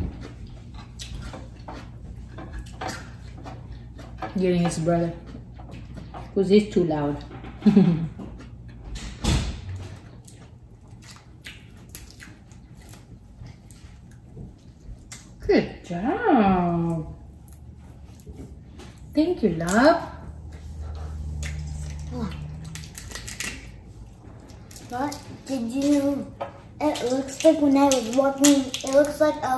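Shells crack and crunch as a woman breaks open crayfish.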